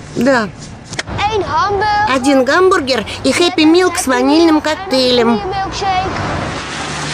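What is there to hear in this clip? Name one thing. A young boy talks with animation.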